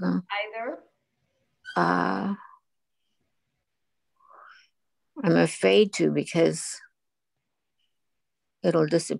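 A woman speaks calmly in short phrases over an online call.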